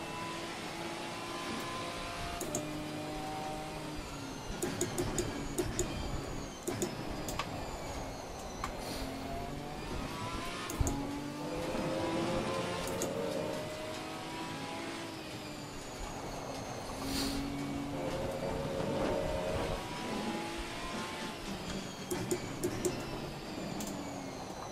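A racing car engine roars, rising and falling in pitch as the gears shift.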